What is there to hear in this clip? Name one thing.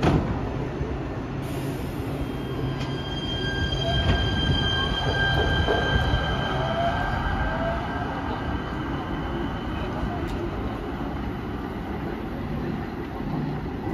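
A train rumbles over the rails and fades into the distance.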